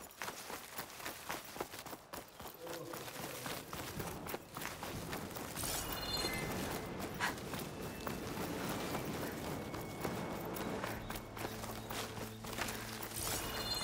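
Footsteps run quickly through grass and leafy undergrowth.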